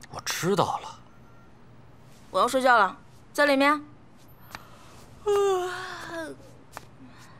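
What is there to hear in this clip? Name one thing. A young woman speaks softly and calmly up close.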